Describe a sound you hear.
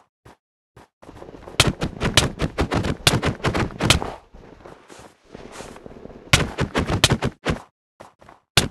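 A pickaxe chips at ice blocks and the ice breaks with a crack.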